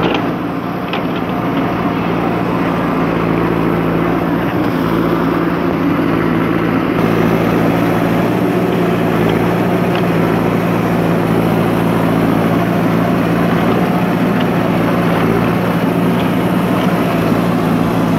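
A digger bucket scrapes and scoops soil.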